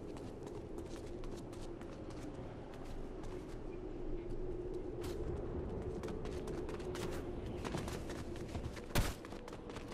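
Footsteps run over grass and rock in a video game.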